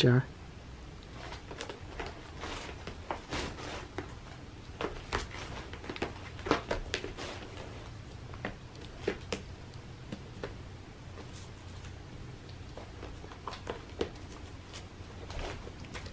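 A cat's paws scratch and rustle against a sisal scratcher.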